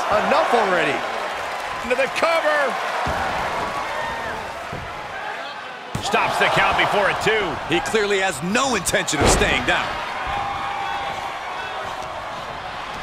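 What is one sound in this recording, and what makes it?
A crowd cheers and roars in a large arena.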